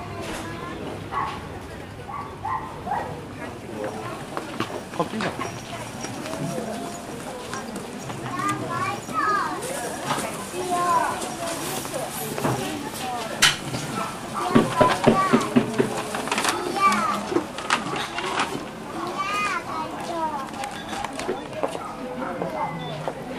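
A crowd of people chatters in the open.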